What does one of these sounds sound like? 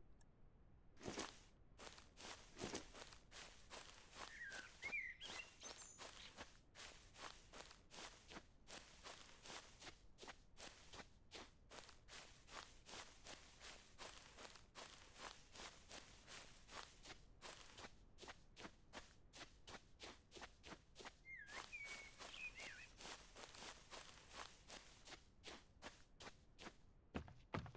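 Footsteps thud quickly and evenly as a person runs.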